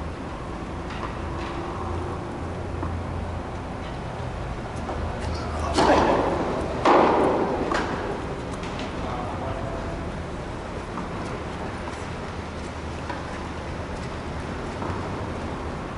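A tennis ball is struck by a racket with sharp pops.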